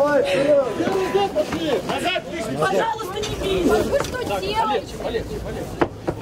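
A crowd of men and women shout loudly and close by.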